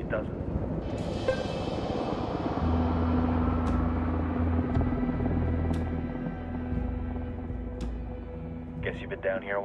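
A helicopter roars past and slowly fades into the distance.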